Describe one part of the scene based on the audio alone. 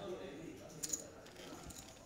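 Poker chips click as they are pushed across a table.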